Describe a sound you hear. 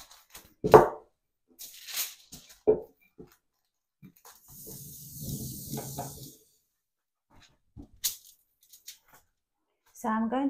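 A cloth wipes across a table with a soft rubbing sound.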